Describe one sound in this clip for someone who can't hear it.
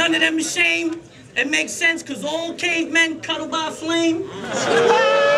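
A young man raps loudly and with force into a microphone.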